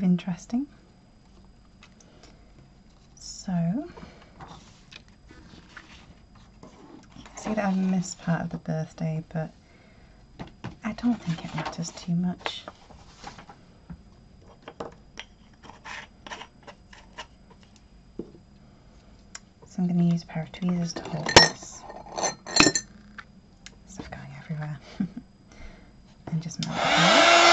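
Paper and ribbon rustle softly as hands handle them.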